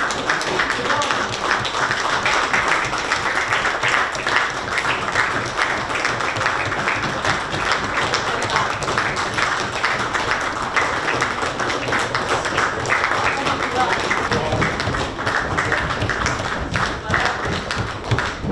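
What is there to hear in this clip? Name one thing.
A crowd applauds steadily in a large room.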